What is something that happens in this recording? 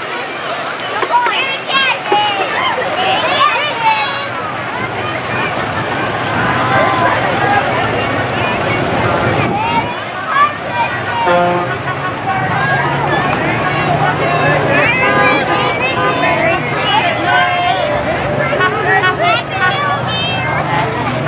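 A crowd of people chatter and call out outdoors.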